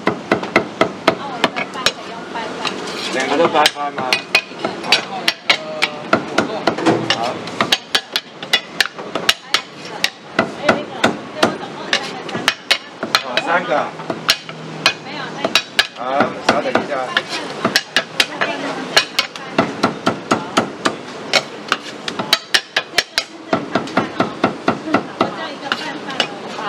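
A cleaver chops rapidly through meat onto a wooden block.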